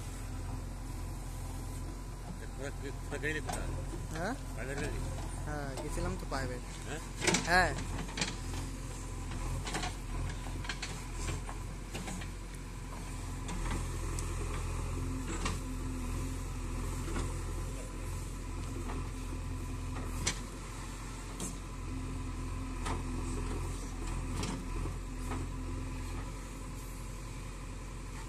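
A backhoe's diesel engine rumbles steadily outdoors.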